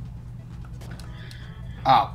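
A video game attack sound effect rings out.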